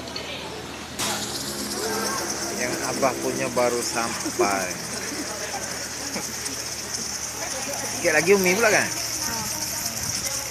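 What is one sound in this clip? Food sizzles and hisses loudly on a hot plate.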